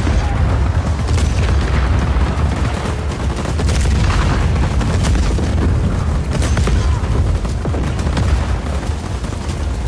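A tank cannon fires with sharp blasts.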